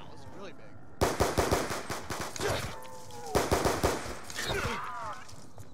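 A pistol fires several loud, sharp shots in quick bursts.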